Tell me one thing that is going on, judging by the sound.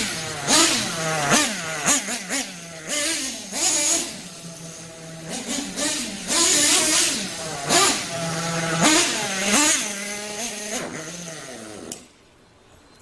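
A nitro-powered RC buggy engine revs and whines as the buggy drives around.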